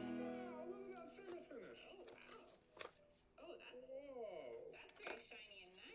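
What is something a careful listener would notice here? Pages of a spiral sketchbook rustle as they are turned.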